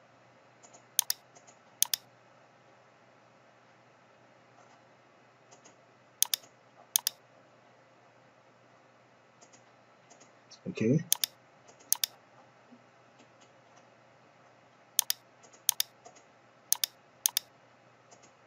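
A computer mouse clicks sharply several times.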